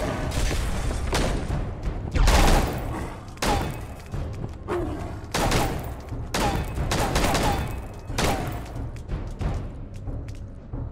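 A large creature stomps with heavy thudding footsteps.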